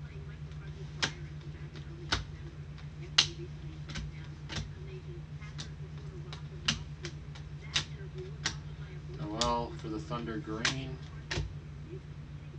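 Trading cards flick and snap as they are shuffled by hand.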